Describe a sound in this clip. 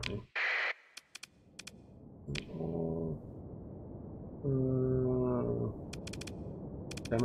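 Short electronic clicks sound as menu buttons are pressed.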